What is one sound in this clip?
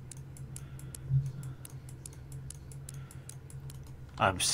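A lock's dial clicks as it turns.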